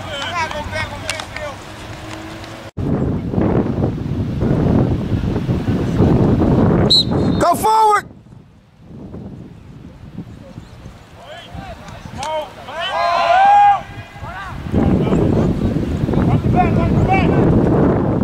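Young players shout across an open field.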